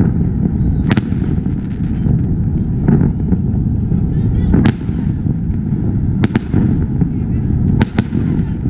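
Fireworks burst with sharp bangs overhead.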